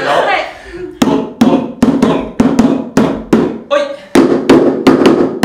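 Hand drums are beaten in a quick, steady rhythm.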